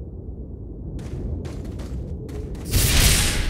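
Footsteps crunch on soft ground.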